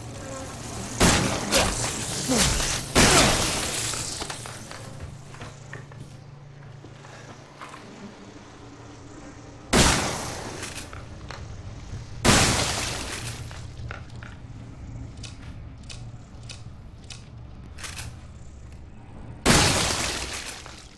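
A shotgun fires loud blasts that echo briefly.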